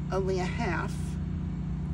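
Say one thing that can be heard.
An elderly woman speaks briefly and calmly nearby.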